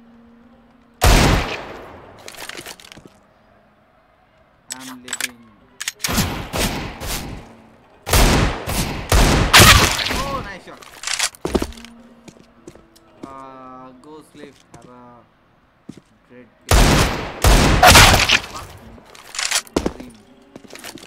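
Loud pistol shots ring out in quick bursts.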